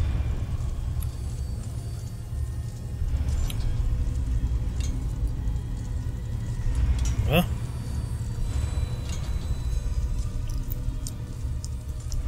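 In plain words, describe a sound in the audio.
A low mechanical rumble hums steadily.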